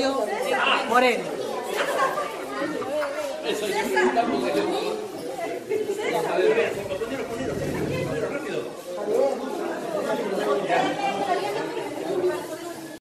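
A middle-aged woman talks cheerfully close to the microphone.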